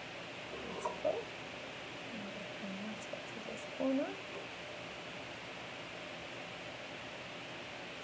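A foam ink applicator dabs softly on paper.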